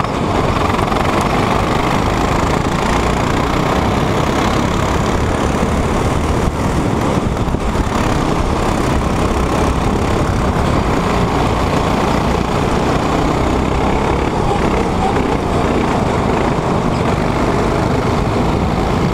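A go-kart engine buzzes loudly up close as the kart races.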